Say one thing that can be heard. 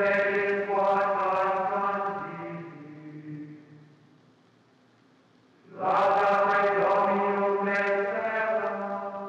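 A choir of men sings.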